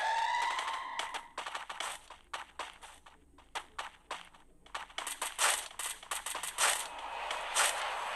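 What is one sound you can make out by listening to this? Quick footsteps run over the ground.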